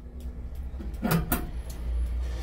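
A metal drain cap clicks as a bare foot presses it.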